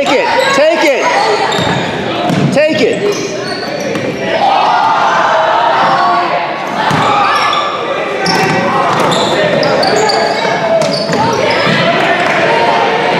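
Spectators in the stands cheer and call out.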